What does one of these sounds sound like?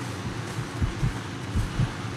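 Boots tread through tall grass.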